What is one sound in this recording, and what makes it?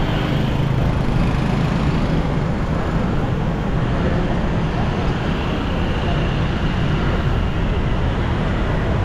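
Motorbike engines hum and buzz steadily nearby.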